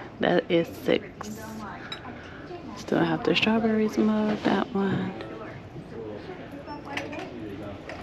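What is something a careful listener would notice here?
Ceramic mugs clink against each other and their metal hooks.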